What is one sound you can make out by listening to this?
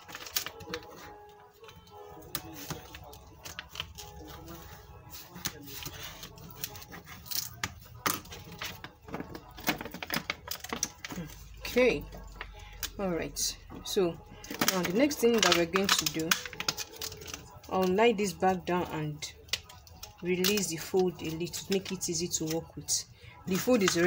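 Plastic film crinkles and rustles under hands.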